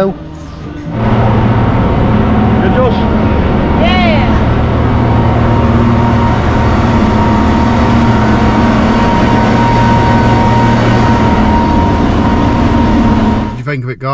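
Outboard motors roar steadily as a boat speeds over water.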